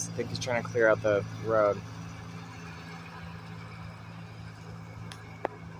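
A tractor engine idles with a steady low rumble nearby.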